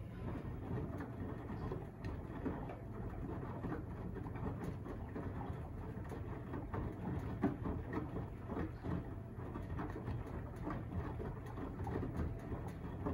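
A washing machine drum turns with a steady low rumble.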